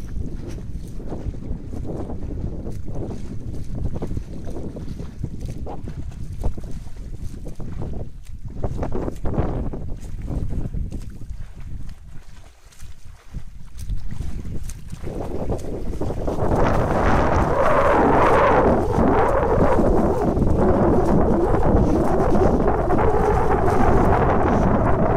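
A small motorboat buzzes across the water.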